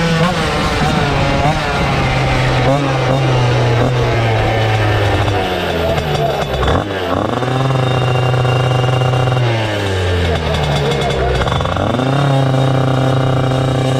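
A small racing engine roars loudly close by, its pitch rising and falling as it revs.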